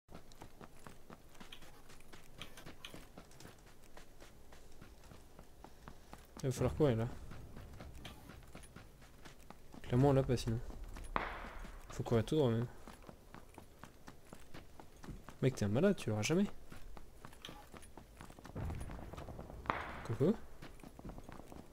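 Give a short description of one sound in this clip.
Footsteps crunch quickly on dry dirt.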